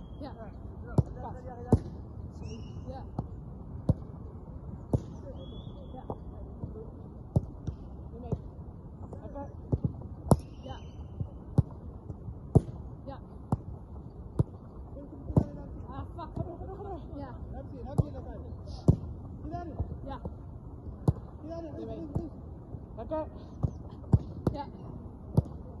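A football is kicked hard again and again.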